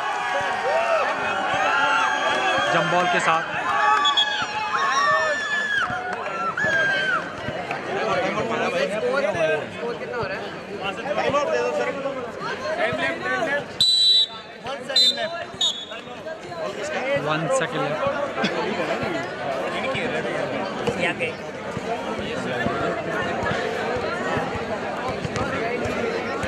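A crowd of spectators chatters and calls out loudly, outdoors.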